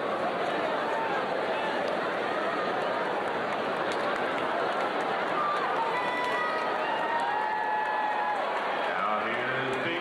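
Young children shout and squeal excitedly.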